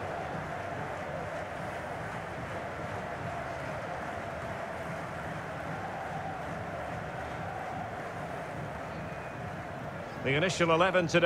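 A stadium crowd murmurs steadily in the distance.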